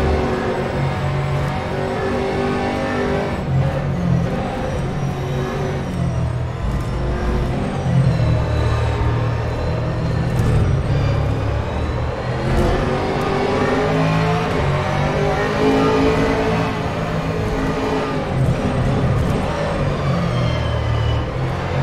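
A racing car engine roars loudly, its pitch rising and dropping as the gears shift.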